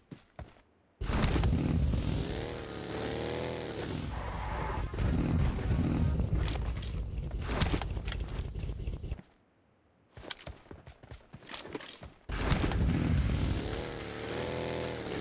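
An engine roars and revs as a buggy drives over rough ground.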